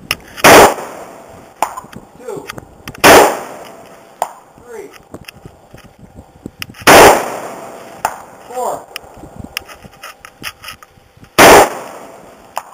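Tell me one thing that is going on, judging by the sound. Loud rifle shots crack and echo across open ground, one every few seconds.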